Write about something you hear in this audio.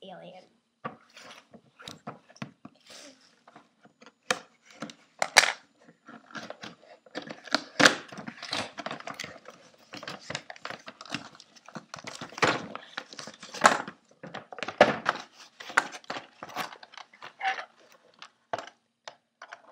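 Cardboard flaps knock and thump against the box.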